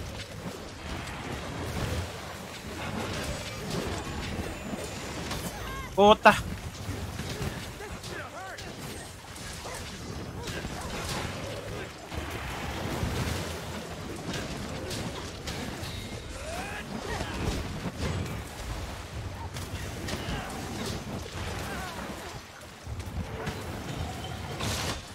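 Heavy blows thud and clang against a large monster.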